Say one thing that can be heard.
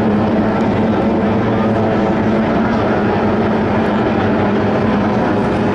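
A racing powerboat engine roars loudly and steadily close by.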